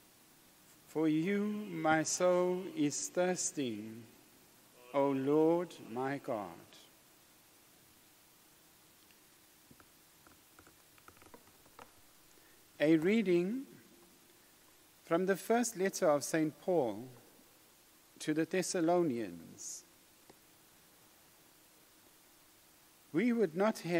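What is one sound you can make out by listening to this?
A middle-aged man speaks slowly and calmly into a microphone, with pauses, in a room with a slight echo.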